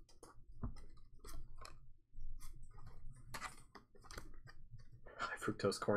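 Plastic-coated trading cards slide and flick against each other.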